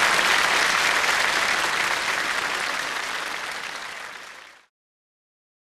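A large audience applauds and the applause fades away.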